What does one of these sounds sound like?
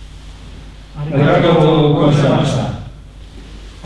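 A group of men call out together, loud, in an echoing hall.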